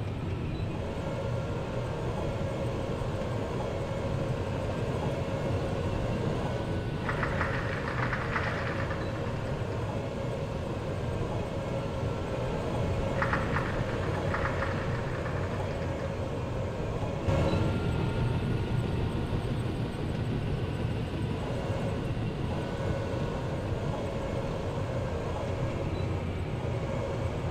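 A tank engine rumbles steadily as the tank drives over rough ground.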